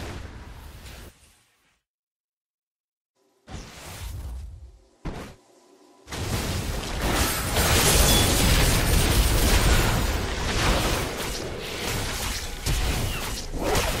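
Magic spells whoosh and blast during a fight.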